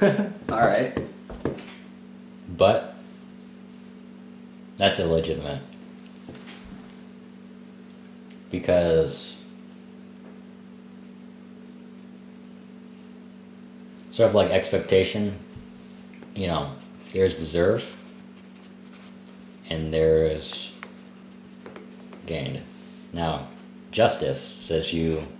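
A young man talks calmly nearby, in short bursts with pauses.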